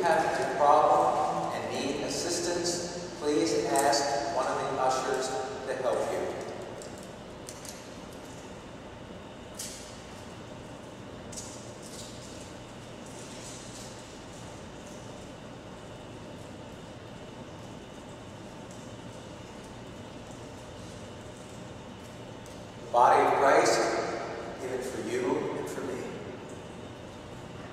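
A man speaks into a microphone, echoing in a large hall, with pauses.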